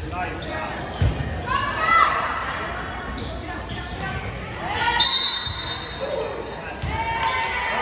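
A volleyball is struck with sharp thumps in a large echoing gym.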